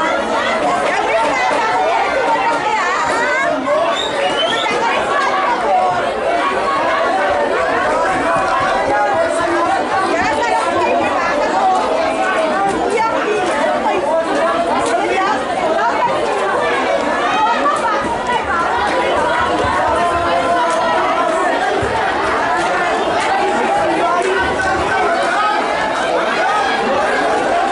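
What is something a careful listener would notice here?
A crowd of spectators chatters and shouts outdoors.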